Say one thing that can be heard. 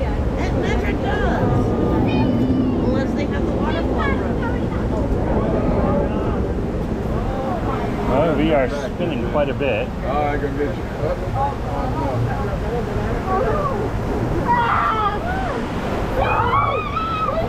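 A middle-aged man talks cheerfully close by.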